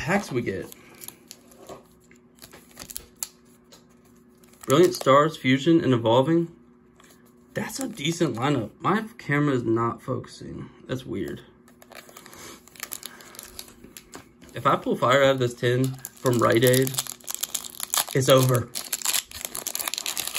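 Foil card packs crinkle as they are handled.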